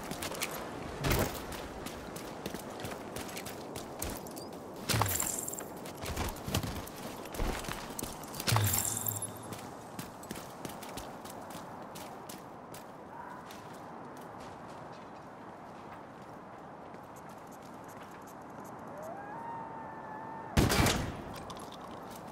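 Gunshots and blasts boom sharply now and then.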